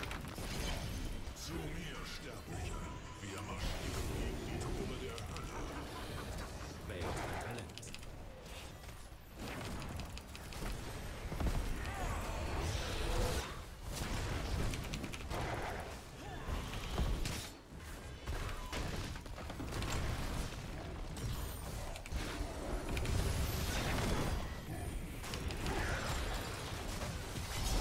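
Game spell effects and clashes crackle and boom.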